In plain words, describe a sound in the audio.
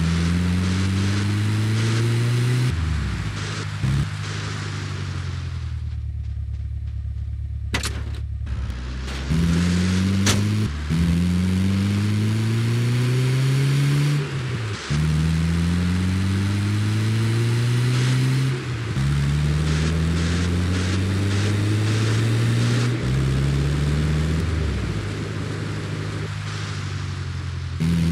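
A vehicle engine revs up repeatedly, rising in pitch as it shifts through gears.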